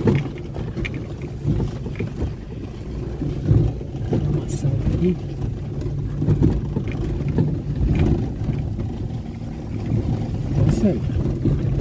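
Raindrops patter on a car windscreen.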